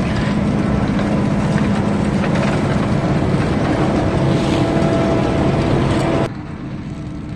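A large harvester engine roars loudly close by.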